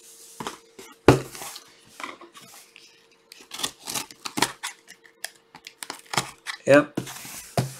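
A cardboard box thumps and scrapes as it is handled.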